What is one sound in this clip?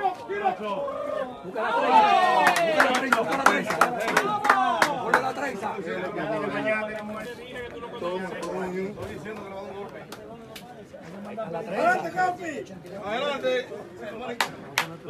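Young men cheer and shout loudly outdoors.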